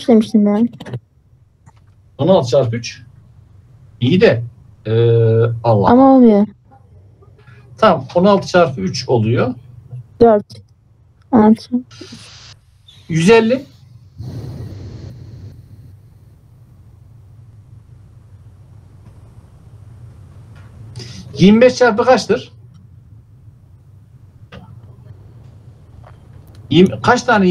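A man speaks calmly over an online call, in bursts with pauses.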